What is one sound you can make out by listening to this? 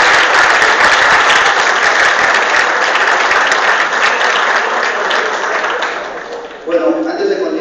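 A crowd applauds and cheers loudly in a large hall.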